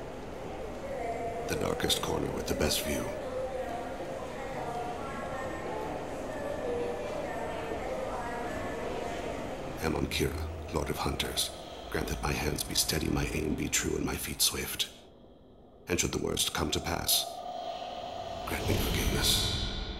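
A man speaks calmly and low, close up.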